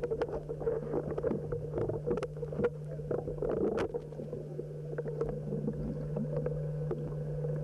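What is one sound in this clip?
Air bubbles gurgle and crackle underwater, close by.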